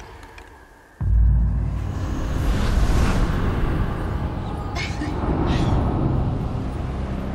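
A loud explosion booms and then rumbles on.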